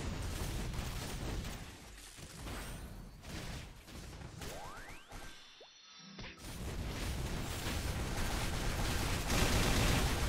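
Game attack sound effects crash and burst repeatedly.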